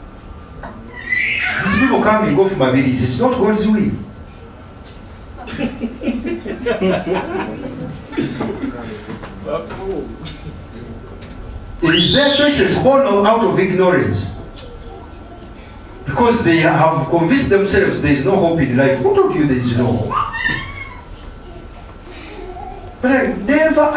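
A man speaks with animation through a microphone in a room with some echo.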